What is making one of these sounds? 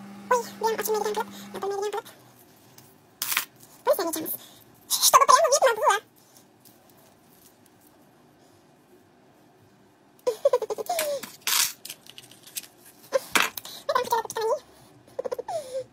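A young woman talks close to a phone microphone, with animation, in short bursts.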